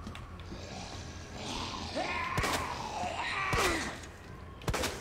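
A zombie groans and snarls.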